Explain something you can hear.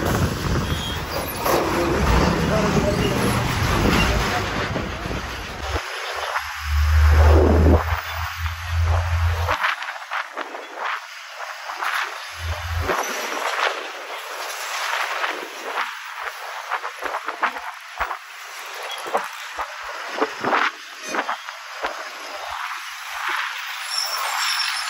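Traffic rumbles past on a busy road.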